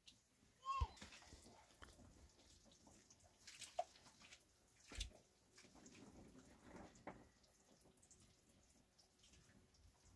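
Hands knead and rub dough in a metal bowl with soft scraping sounds.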